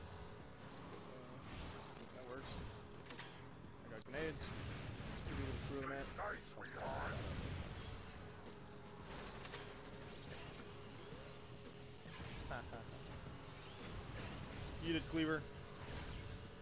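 A video game racing engine hums steadily.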